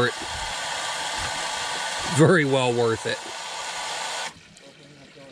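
Water rushes through a hose.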